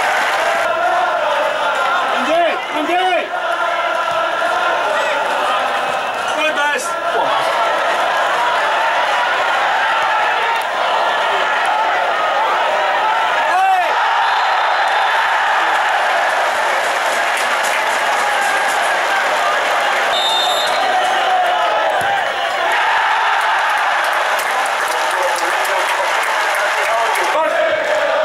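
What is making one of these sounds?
A large crowd sings and chants loudly in a stadium.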